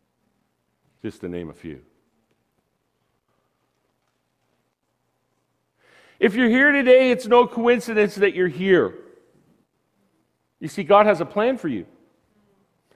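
A middle-aged man speaks with animation through a microphone in a large room.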